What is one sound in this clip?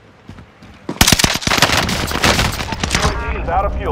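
A gun fires rapid bursts of loud shots.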